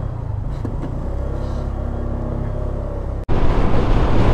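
A motorcycle engine hums steadily at low speed.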